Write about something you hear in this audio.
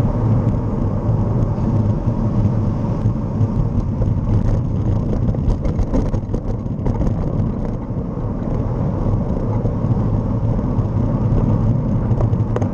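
Tyres roll steadily along the road.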